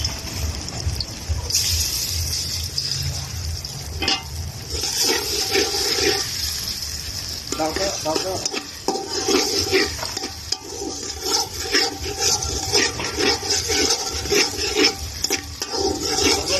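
A metal spoon scrapes and clanks against a wok.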